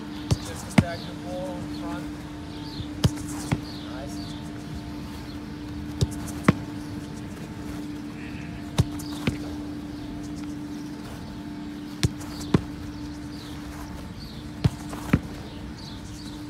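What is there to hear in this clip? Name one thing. A goalkeeper dives and thuds onto artificial turf.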